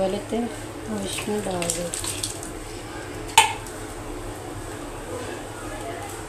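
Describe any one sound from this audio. Potato chunks plop into a thick sauce.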